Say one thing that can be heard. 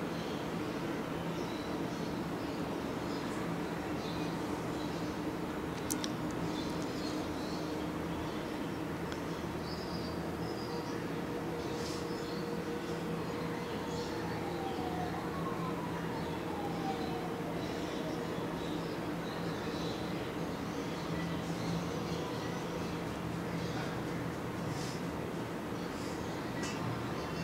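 Cloth rustles softly as thread is pulled through it by hand.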